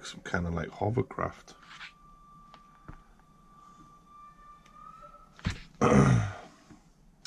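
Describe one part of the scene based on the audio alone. Paper pages rustle as a magazine is leafed through.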